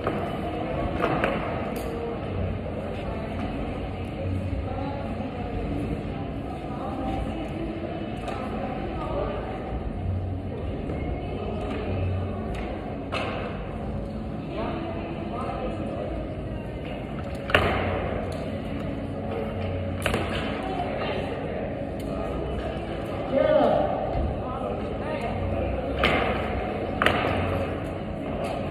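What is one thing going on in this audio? A climbing rope slides through a belay device.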